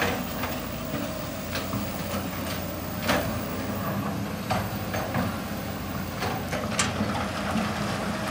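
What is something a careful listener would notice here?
Excavator engines rumble steadily.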